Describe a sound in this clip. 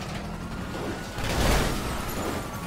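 A submachine gun fires a burst.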